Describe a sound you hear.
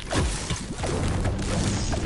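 A pickaxe knocks against stone with sharp thuds.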